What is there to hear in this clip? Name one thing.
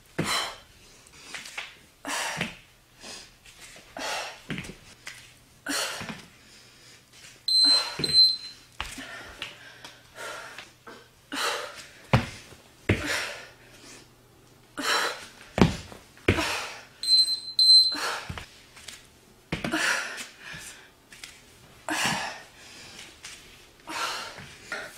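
A young woman talks in short, breathless bursts close by.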